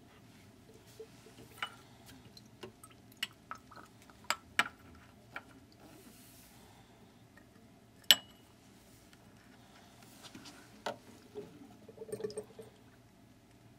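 A glass beaker clinks as it is picked up and set down on a stone counter.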